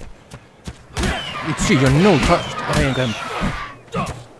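A raptor-like dinosaur screeches and hisses.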